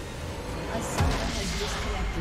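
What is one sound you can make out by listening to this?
A magical blast bursts with a sudden deep boom.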